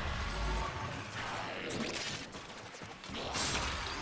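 Electricity crackles and buzzes in bursts.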